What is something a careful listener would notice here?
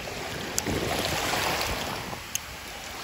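A hand splashes briefly in shallow water.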